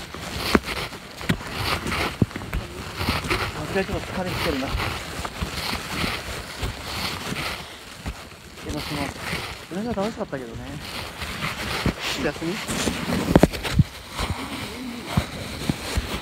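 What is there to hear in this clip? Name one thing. Dry leaves crunch and rustle underfoot as someone walks.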